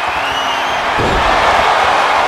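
A body slams down hard onto a wrestling mat with a heavy thud.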